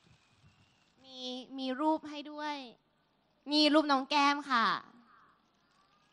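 A young woman speaks with animation into a microphone over a loudspeaker.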